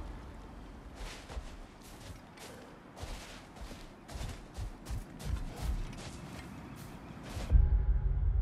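Heavy footsteps splash through shallow water and crunch on wet sand.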